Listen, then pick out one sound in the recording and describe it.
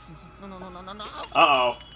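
Sparkles tinkle and chime.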